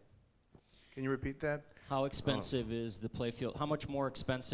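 A man speaks to an audience through a microphone.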